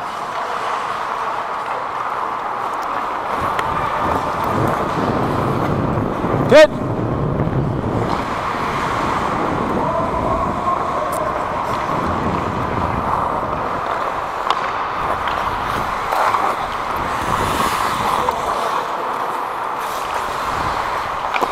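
Ice skates scrape and hiss across the ice throughout, in a large echoing hall.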